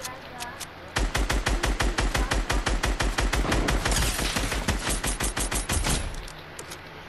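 A video game automatic rifle fires in rapid bursts.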